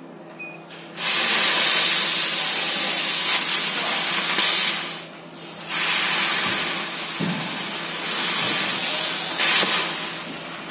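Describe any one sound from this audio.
A cutting machine hisses loudly as it cuts.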